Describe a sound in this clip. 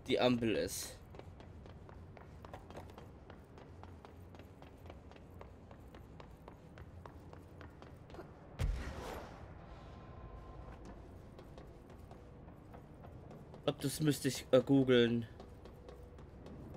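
Footsteps run quickly over a hard, clanking floor.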